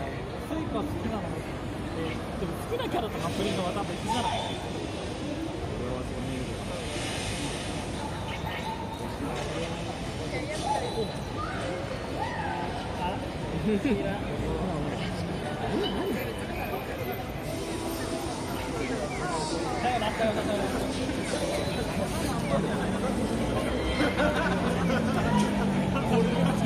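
A busy city street hums with traffic and crowd murmur outdoors.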